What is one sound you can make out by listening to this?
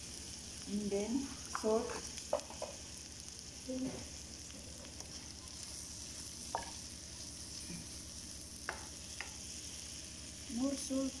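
Food sizzles steadily in a hot pan.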